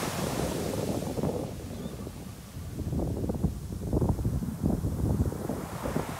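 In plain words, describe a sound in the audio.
Surf breaks and washes up on a sandy beach.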